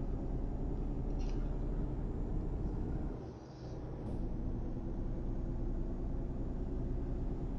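A truck engine drones steadily as the truck drives along a road.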